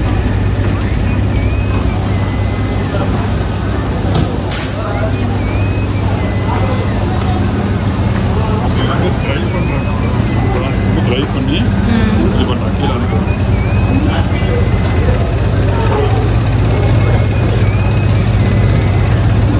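Machinery hums and rattles steadily.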